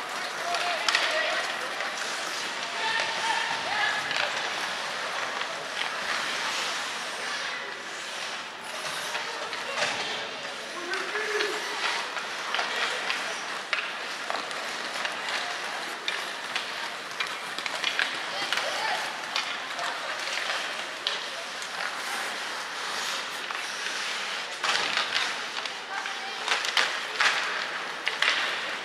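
Skates scrape and hiss on ice in a large echoing arena.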